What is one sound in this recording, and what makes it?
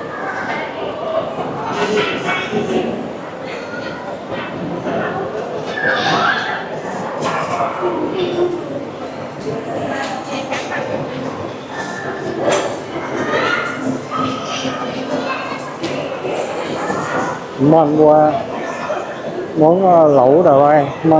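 Many voices murmur and chatter around an echoing indoor hall.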